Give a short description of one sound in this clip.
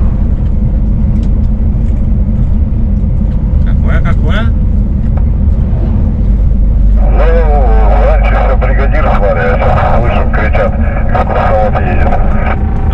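A vehicle engine drones steadily with a low rumble.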